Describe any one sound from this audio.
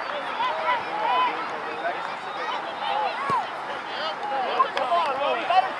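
A crowd of spectators shouts and cheers outdoors at a distance.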